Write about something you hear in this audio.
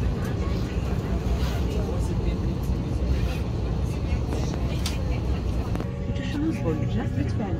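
Air conditioning hums and hisses steadily in an airliner cabin.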